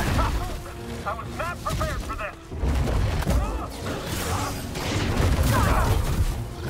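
Blaster shots zap in quick bursts.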